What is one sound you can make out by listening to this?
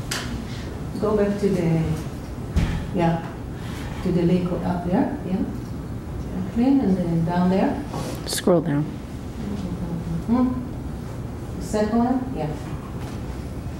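A woman speaks calmly to an audience, with a slight echo.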